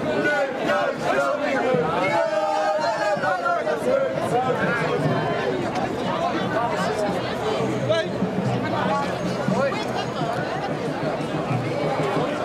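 A large crowd talks and cheers loudly outdoors.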